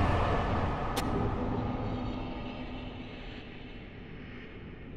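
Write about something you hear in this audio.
A game's victory chime rings out.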